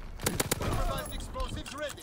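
Suppressed gunshots pop in quick bursts.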